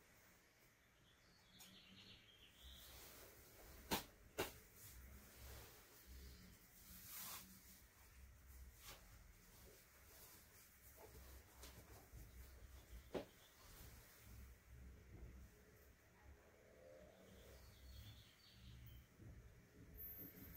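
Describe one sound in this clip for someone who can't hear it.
Cloth rustles as a person moves on a straw mat floor.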